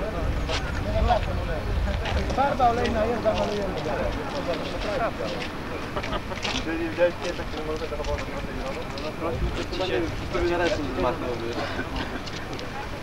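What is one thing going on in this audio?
A group of men and women talk among themselves outdoors.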